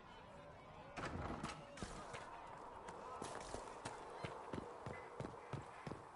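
Footsteps crunch on snow and stone.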